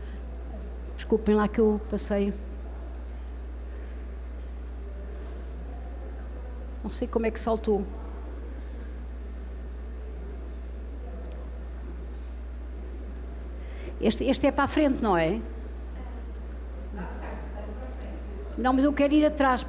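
An elderly woman speaks calmly into a microphone, in short bursts with pauses, heard through a loudspeaker in a large room.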